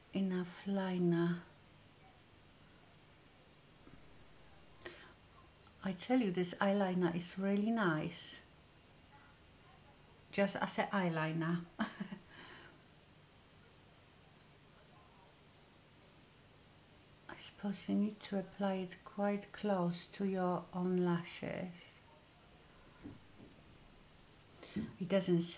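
A woman talks calmly and close to a microphone, in short bursts with pauses.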